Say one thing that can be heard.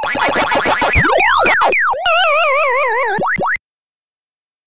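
A descending electronic warble plays as a game character dies.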